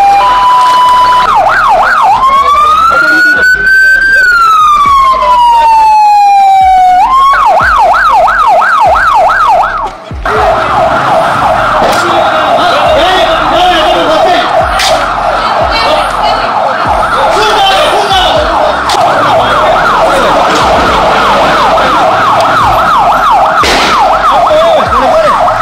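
A police siren wails and yelps loudly nearby.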